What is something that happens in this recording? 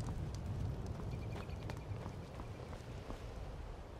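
Armoured footsteps walk on stone paving.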